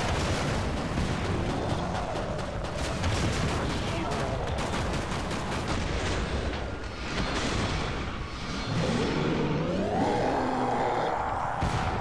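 A rocket launcher fires with a whoosh.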